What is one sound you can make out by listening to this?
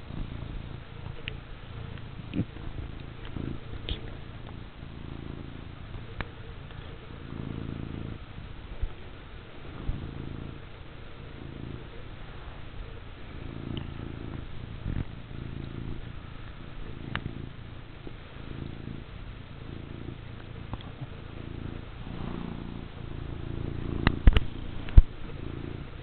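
A cat's head rubs and bumps against the microphone.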